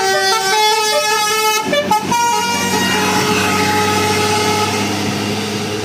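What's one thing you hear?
A bus engine rumbles as it passes close by.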